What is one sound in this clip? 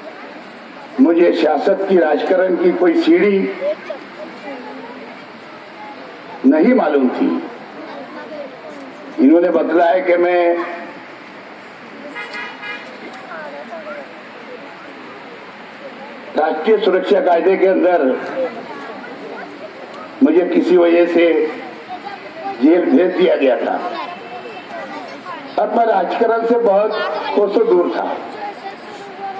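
A middle-aged man speaks forcefully into a microphone over a loudspeaker, in short bursts with pauses, outdoors.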